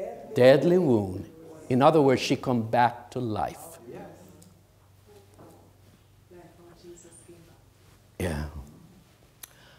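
An elderly man preaches with animation through a microphone in an echoing hall.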